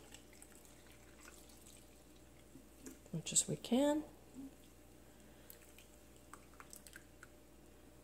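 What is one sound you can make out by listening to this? Liquid pours from a jug into a jar with a soft trickle.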